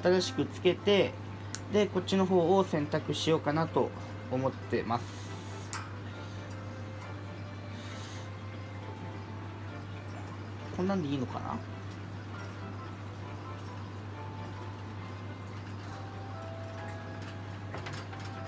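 Wire cage bars clink and rattle softly.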